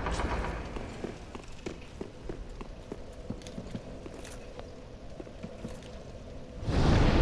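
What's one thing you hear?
Armoured footsteps clank quickly on stone.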